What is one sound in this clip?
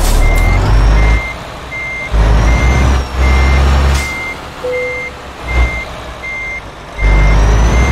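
A truck engine rumbles low, rising and falling.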